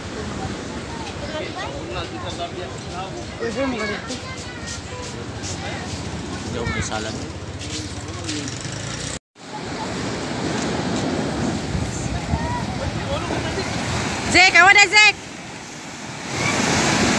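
Waves wash onto a beach.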